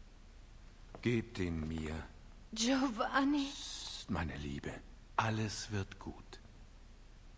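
A young woman speaks softly and wearily, close by.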